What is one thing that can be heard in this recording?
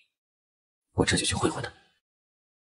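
A young man grunts briefly.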